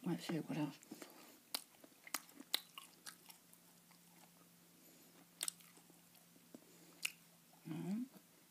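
A woman chews food with wet, smacking sounds.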